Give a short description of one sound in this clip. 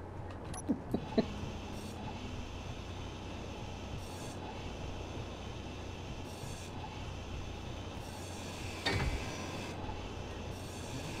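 A power grinder whirs and grinds steadily against metal.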